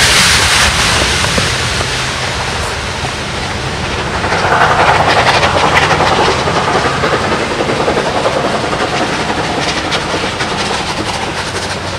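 A steam locomotive chuffs hard as a train rolls past below.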